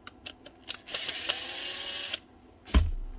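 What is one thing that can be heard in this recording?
A power drill whirs briefly at high speed.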